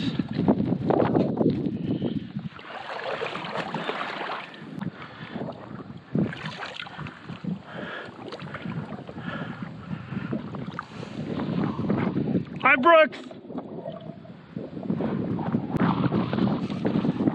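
Water laps against a small boat.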